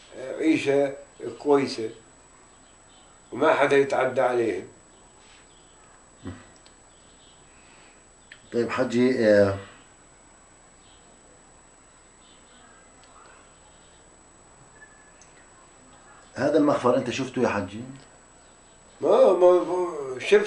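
An elderly man speaks calmly close by, in short bursts with pauses.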